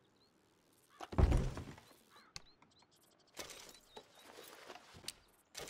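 Wooden drawers slide open and shut.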